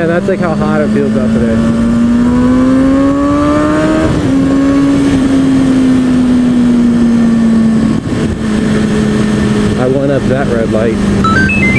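A motorcycle engine hums close by, rising slowly in pitch and dropping as it shifts gear.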